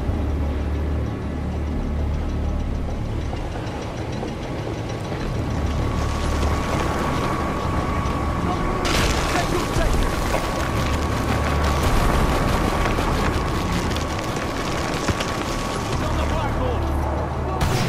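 Quick footsteps clank on a metal floor.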